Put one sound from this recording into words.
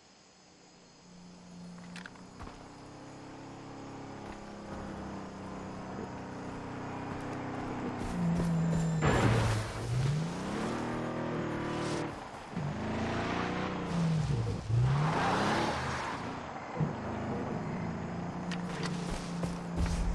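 A car engine rumbles and revs, rising and falling in pitch as it drives past.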